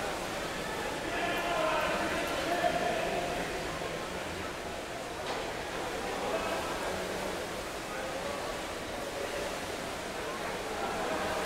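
Men talk in a large echoing hall.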